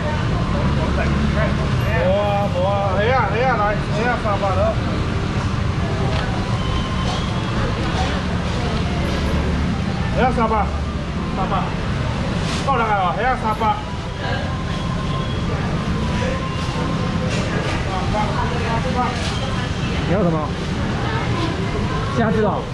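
A middle-aged man talks with animation nearby.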